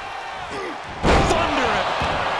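A heavy body slams down hard onto a wrestling mat with a loud thud.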